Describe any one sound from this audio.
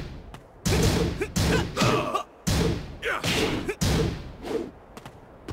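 Heavy punches land with loud thuds and impact bursts.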